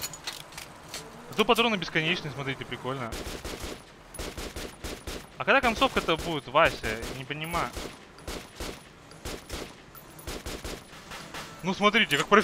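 A rifle fires in short bursts, with sharp echoing shots.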